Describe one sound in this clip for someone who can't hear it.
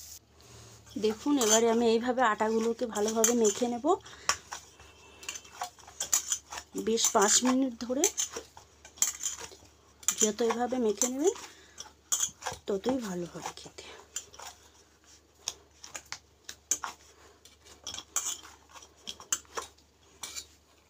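Hands knead soft dough in a bowl with quiet squishing and patting.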